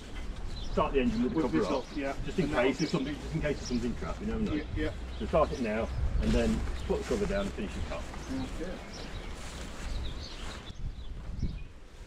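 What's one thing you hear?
Men talk nearby in calm, casual voices.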